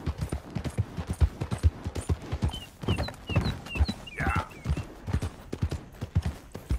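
Horse hooves thud rapidly on a dirt track at a gallop.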